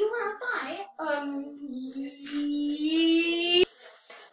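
A young boy sings a drawn-out, wavering note close by.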